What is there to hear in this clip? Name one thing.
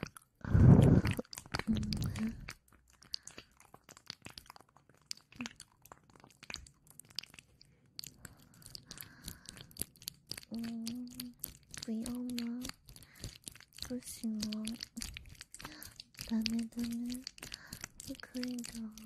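A young woman makes soft clicking mouth sounds close to a microphone.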